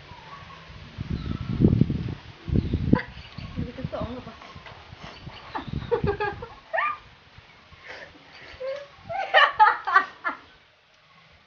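Two young women laugh loudly up close.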